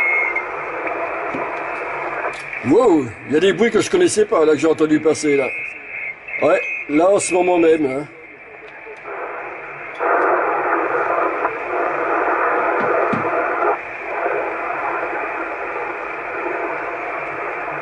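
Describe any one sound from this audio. Radio static hisses steadily.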